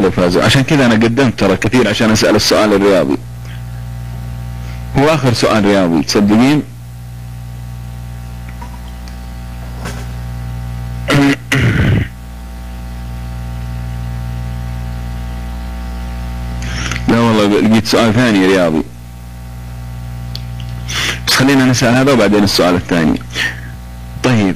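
A man speaks calmly into a microphone in bursts with pauses.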